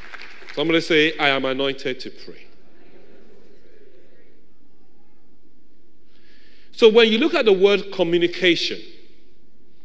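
A man speaks slowly and solemnly into a microphone.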